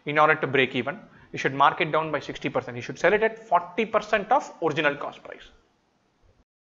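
A young man speaks calmly and clearly into a close microphone.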